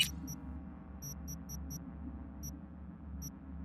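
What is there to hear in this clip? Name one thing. Soft electronic beeps sound as a menu selection moves.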